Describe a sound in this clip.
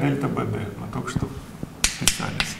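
A young man speaks calmly at close range.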